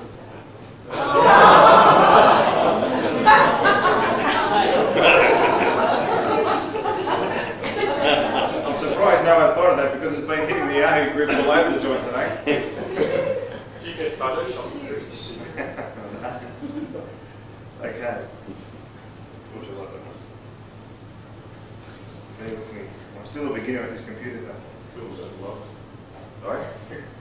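A man speaks to an audience in an echoing hall.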